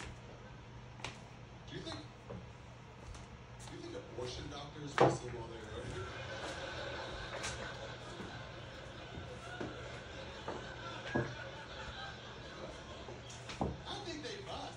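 Pool balls knock and clack against each other on a table.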